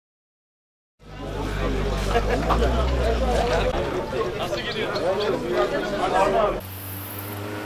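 Several men talk casually nearby outdoors.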